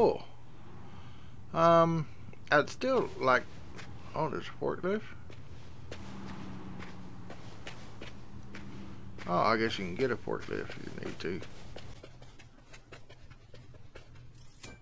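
Footsteps fall on pavement.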